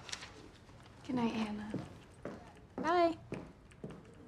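A young woman talks with animation.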